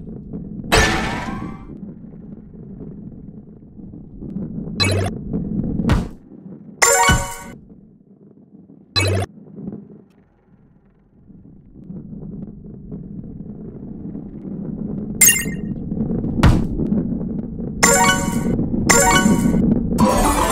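Bright chimes ring as coins are collected.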